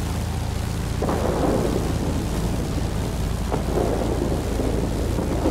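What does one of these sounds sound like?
Machine guns fire in short rattling bursts.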